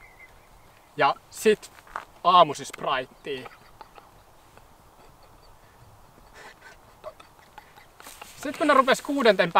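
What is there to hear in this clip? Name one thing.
A young man talks with animation close by, outdoors.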